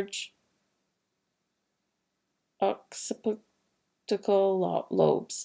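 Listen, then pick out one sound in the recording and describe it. A woman speaks calmly, close to a microphone, with pauses.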